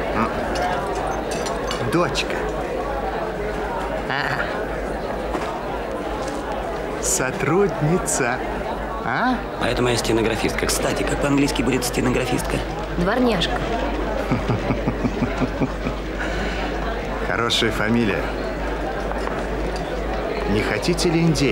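A middle-aged man talks cheerfully nearby.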